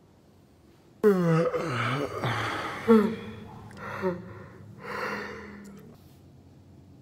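A young man yells loudly and strains close by.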